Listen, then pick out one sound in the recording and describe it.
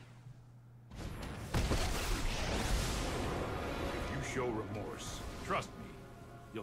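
A magical whoosh and rumble from a game sweeps through.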